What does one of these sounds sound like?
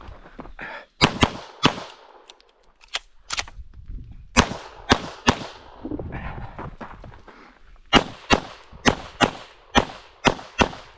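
A handgun fires sharp, loud shots in quick bursts outdoors.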